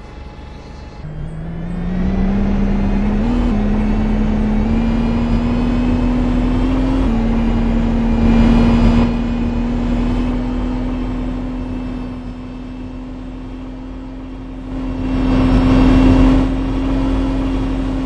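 A bus engine hums steadily and its pitch climbs as the bus speeds up.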